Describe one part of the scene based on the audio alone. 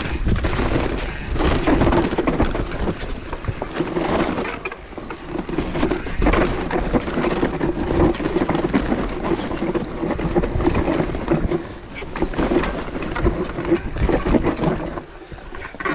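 Bike tyres rumble and crunch over a rough dirt trail.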